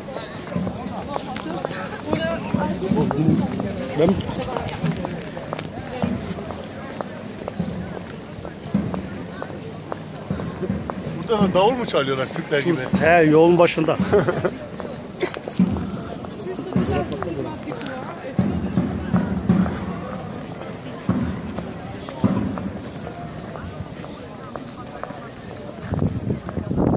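Footsteps scuff on paving stones.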